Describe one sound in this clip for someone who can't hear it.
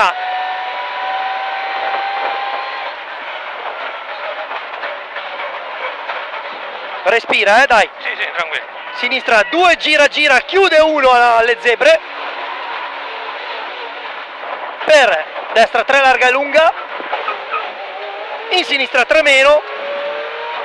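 A rally car engine roars loudly and revs up and down.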